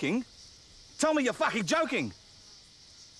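A second man answers loudly close by.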